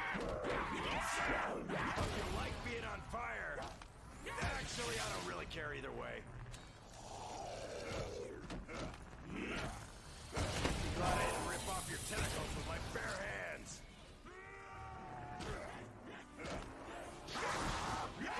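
Monsters snarl and growl up close.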